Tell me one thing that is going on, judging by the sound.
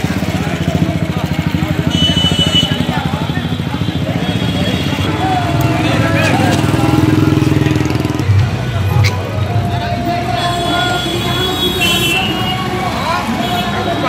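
A crowd of men talk and shout nearby outdoors.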